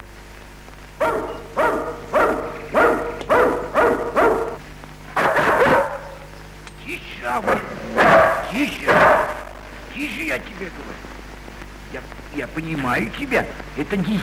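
A dog barks loudly and repeatedly.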